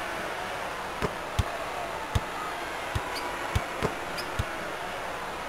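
A basketball bounces on a wooden court with dull, regular thuds.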